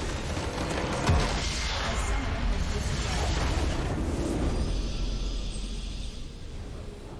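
A base structure explodes with a loud crystalline crash.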